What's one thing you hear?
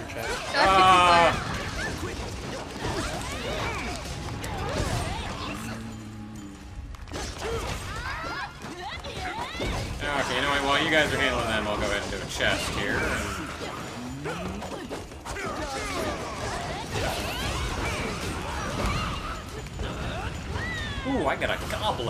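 Explosions boom and crackle in a game fight.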